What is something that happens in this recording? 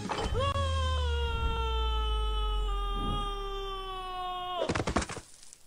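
A young boy wails loudly in a long, drawn-out cry.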